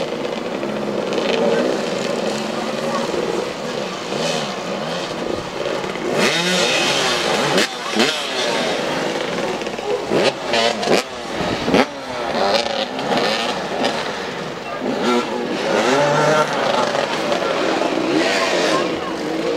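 Motorcycle engines rev and whine, rising and falling in pitch, outdoors.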